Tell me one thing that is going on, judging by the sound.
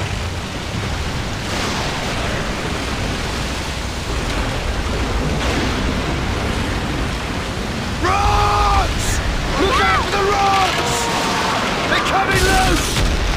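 Heavy rain pours down steadily in a roaring storm.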